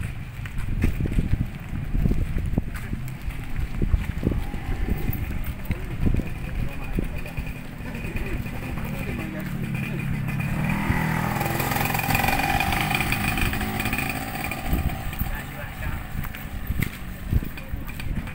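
Footsteps scuff along a paved path outdoors.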